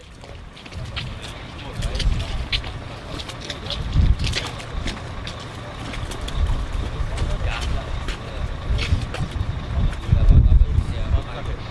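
Boots tread and squelch on wet plastic sheeting.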